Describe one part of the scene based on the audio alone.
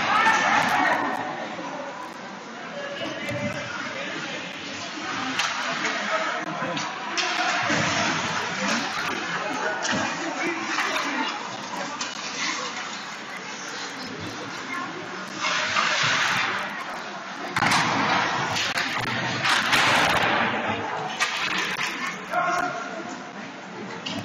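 Skates scrape and carve across the ice in a large echoing arena.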